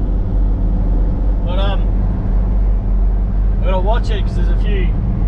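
Tyres rumble over a gravel road.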